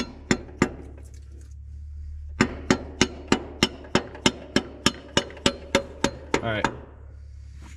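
A ratchet wrench clicks sharply against metal in a steady rhythm.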